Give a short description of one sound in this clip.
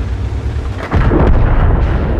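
A shell explodes with a loud crackling burst.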